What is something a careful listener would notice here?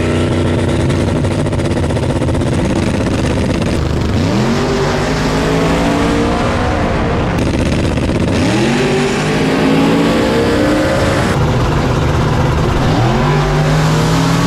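A loud race car engine roars at full throttle, its pitch climbing again and again as it shifts gears.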